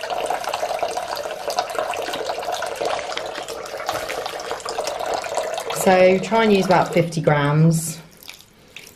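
Water runs from a tap and splashes into a basin.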